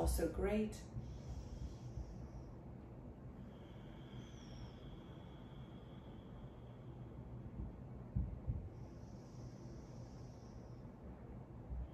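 A young woman breathes slowly and deeply.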